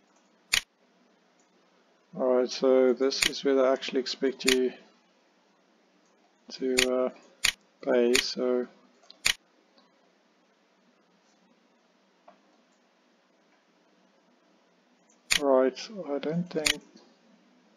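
Menu buttons click sharply several times.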